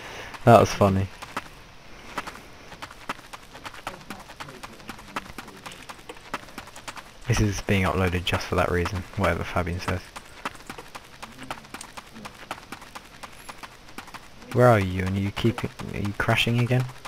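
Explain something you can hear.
Footsteps patter steadily on sand.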